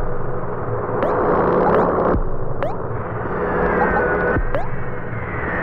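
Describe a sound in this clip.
Short menu blips sound as choices are picked.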